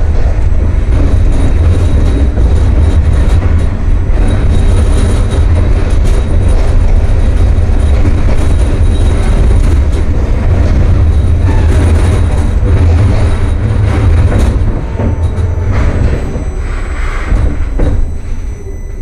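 A tram rumbles and rattles along its rails, then slows and quiets.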